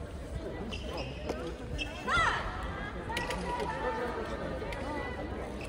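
Young people talk and call out in an echoing hall.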